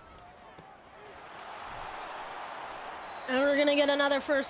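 A stadium crowd roars with excitement.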